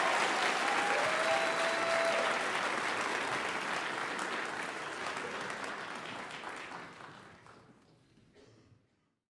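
Applause fills a large hall, then fades away.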